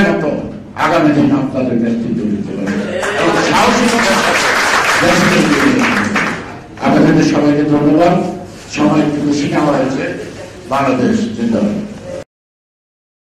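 A middle-aged man gives a loud, animated speech through a microphone and loudspeakers.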